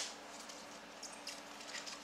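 Trading cards rustle and flick in a hand.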